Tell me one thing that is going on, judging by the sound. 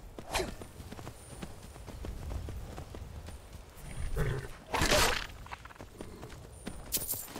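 Horse hooves thud steadily on soft ground as a horse gallops.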